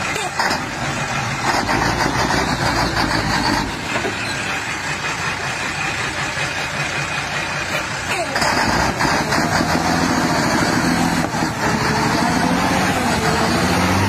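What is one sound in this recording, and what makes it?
Truck tyres churn and squelch through thick mud.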